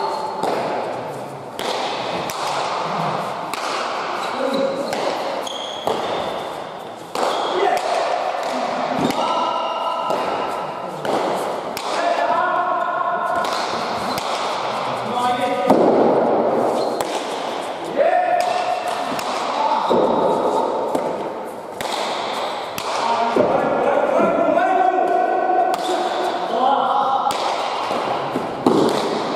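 A ball smacks hard against walls and the floor, echoing through a large hall.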